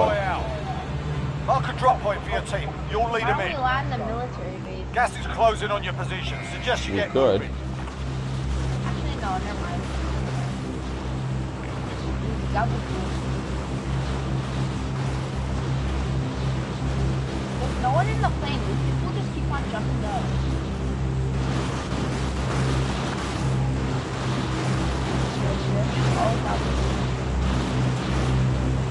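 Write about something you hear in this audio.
Propeller aircraft engines drone steadily and loudly.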